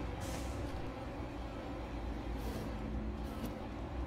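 A wooden drawer slides open with a scrape.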